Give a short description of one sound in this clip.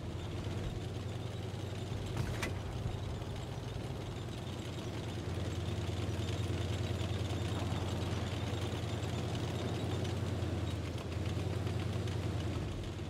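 A tank's tracks clatter over stone.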